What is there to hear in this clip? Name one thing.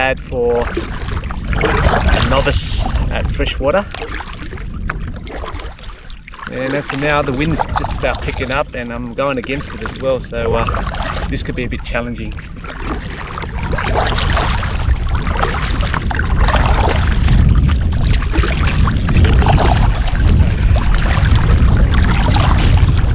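A paddle splashes and swishes through water with each stroke.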